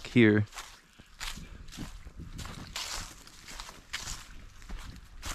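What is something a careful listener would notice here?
Footsteps crunch through dry fallen leaves at a steady walking pace.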